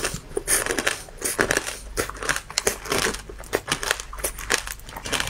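A young woman chews candied fruit with loud crunching and wet mouth sounds, close to a microphone.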